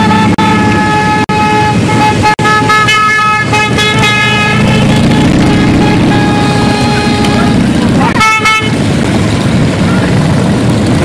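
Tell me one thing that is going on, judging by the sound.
Many motorcycle engines rumble loudly as a procession rides past close by.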